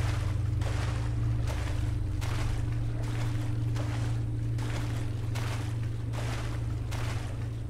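Footsteps splash through shallow water at a steady pace.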